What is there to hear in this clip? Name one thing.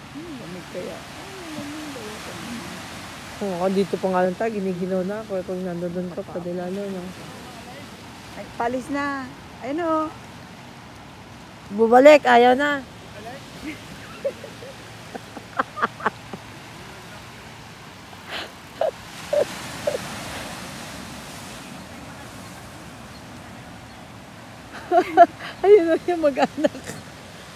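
Waves wash and break against rocks below.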